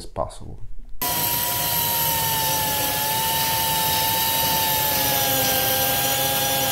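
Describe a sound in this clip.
An angle grinder whines steadily as it cuts metal.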